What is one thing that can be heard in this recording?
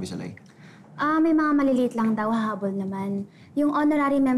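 A young woman speaks nearby.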